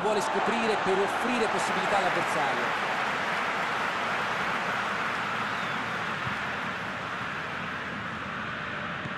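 A stadium crowd roars steadily, slowly getting a little quieter.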